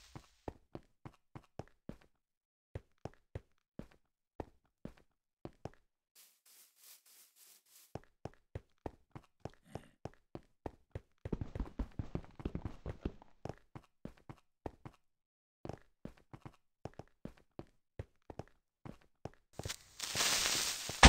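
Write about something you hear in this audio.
Footsteps crunch on snow at a steady walking pace.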